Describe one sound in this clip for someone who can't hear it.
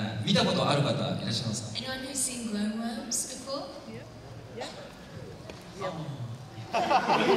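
A young man speaks calmly into a microphone over loudspeakers in a large hall.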